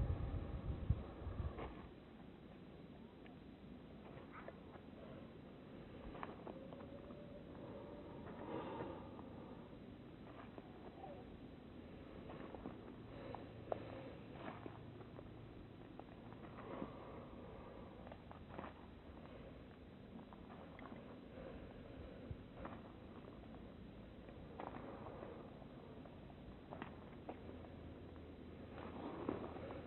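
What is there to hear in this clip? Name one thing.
Footsteps crunch slowly over grass and gravel.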